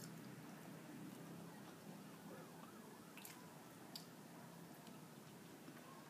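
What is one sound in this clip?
A young woman chews food close by.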